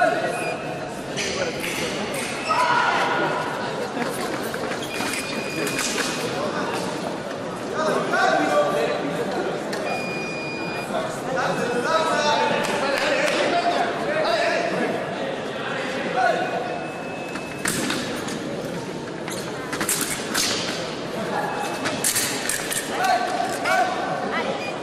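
Fencers' feet shuffle and stamp on the floor.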